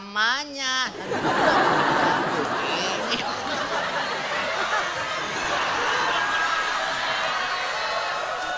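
A group of people laugh and clap loudly.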